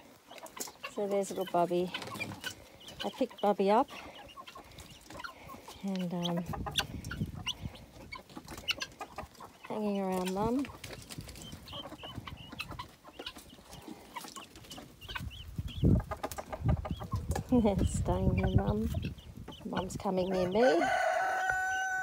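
Guinea fowl call out with short, harsh squawks, over and over.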